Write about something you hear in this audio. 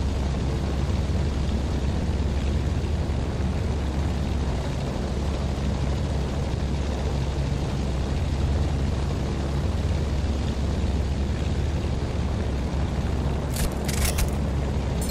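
An airplane engine drones steadily.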